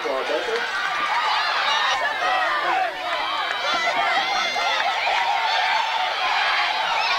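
A crowd of spectators cheers and shouts nearby, outdoors.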